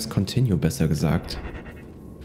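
A young man speaks briefly into a close microphone with animation.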